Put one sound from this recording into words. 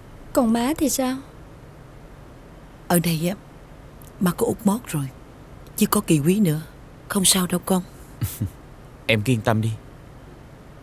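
A middle-aged woman speaks tearfully and pleadingly, close by.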